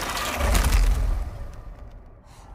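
A creature growls deeply.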